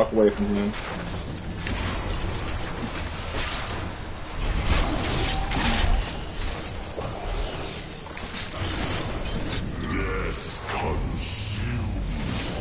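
A young man talks through a microphone with animation.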